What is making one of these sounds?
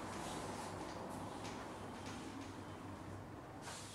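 A duster rubs across a whiteboard.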